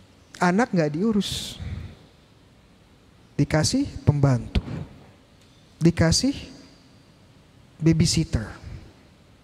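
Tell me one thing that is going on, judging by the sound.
A young man speaks calmly into a microphone in short phrases, in a room with a slight echo.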